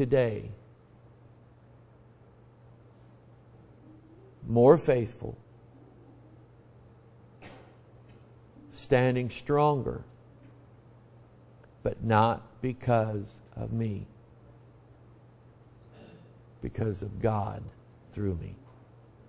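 A man preaches with emphasis in short bursts through a microphone.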